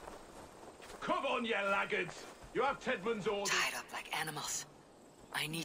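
A man shouts orders gruffly.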